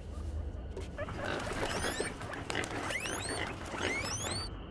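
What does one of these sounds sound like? Bird wings flap loudly and close by.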